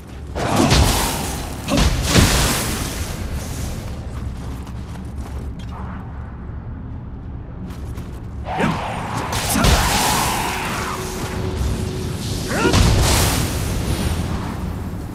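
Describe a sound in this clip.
Magic bursts crackle and whoosh.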